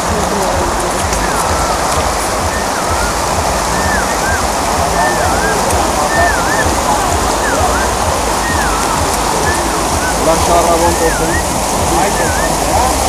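Water rushes and splashes around tyres.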